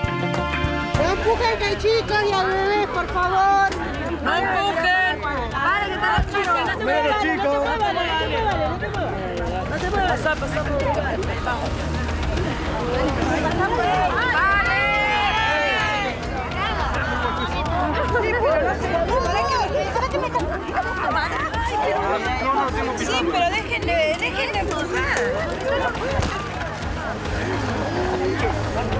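A crowd of adults and children talk over one another close by.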